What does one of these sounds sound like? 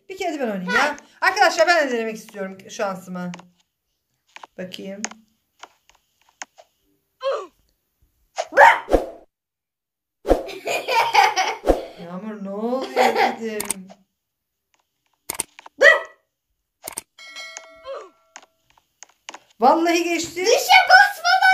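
A young girl talks and giggles nearby.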